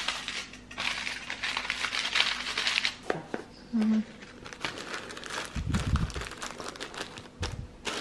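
Aluminium foil crinkles as it is handled.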